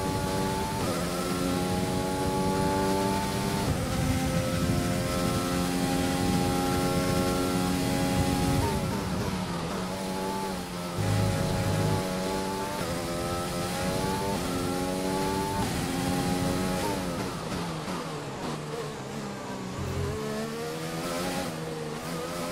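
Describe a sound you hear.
A racing car engine whines at high pitch, shifting gears up and down.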